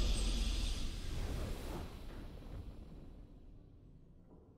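A triumphant game victory fanfare rings out and slowly fades away.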